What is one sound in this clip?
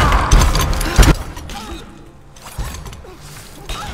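Metal blades clash.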